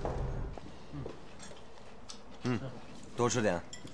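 Chopsticks clink against dishes at a table.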